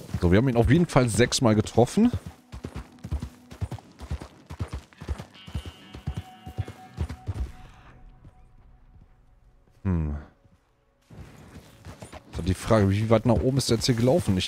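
A horse's hooves clop steadily on rocky ground.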